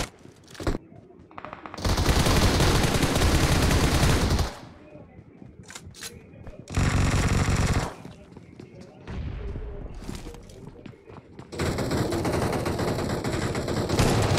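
Footsteps run quickly across hard ground.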